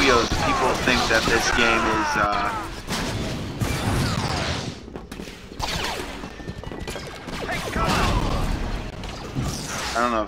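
Blaster rifles fire in rapid bursts.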